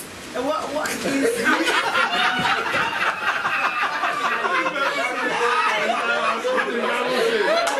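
A crowd of men and women chatters and laughs.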